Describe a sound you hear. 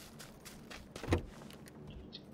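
A wooden door bangs open with a heavy thud.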